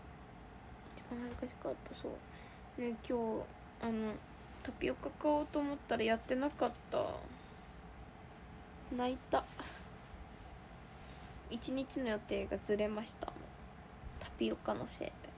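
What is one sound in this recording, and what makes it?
A young woman speaks softly and casually, close to the microphone.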